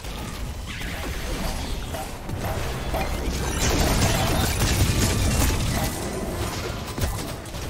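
Magic spells crackle and burst in a fast game battle.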